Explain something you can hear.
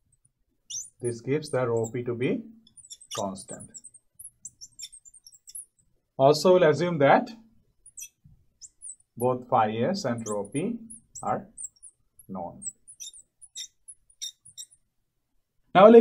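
A man speaks calmly and clearly, close by, with pauses.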